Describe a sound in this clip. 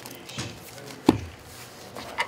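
A stack of cards taps down onto a table.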